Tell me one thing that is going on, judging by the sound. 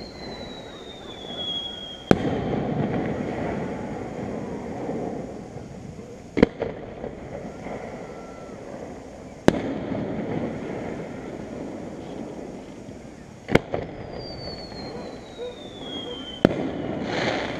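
A firework rocket whistles as it climbs, its pitch slowly falling.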